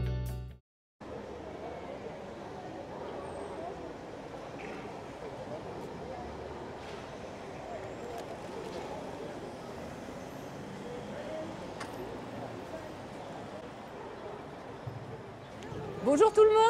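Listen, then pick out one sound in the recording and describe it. A group of adults chat quietly outdoors.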